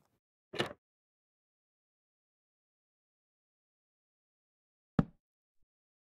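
A wooden block clicks into place.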